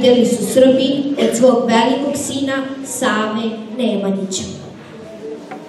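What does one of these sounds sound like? A young girl reads out into a microphone.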